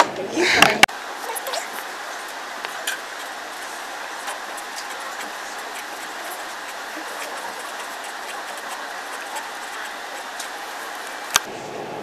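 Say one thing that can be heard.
A marker pen scratches on paper.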